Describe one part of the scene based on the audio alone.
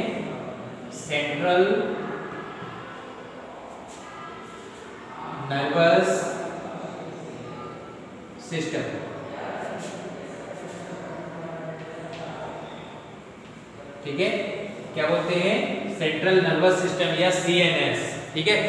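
A man speaks clearly and explains.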